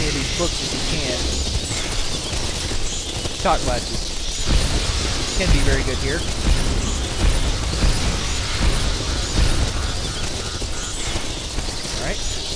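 Energy beams crackle and buzz as a proton stream fires.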